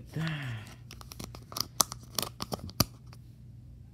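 A small plastic cartridge clicks into a plastic case.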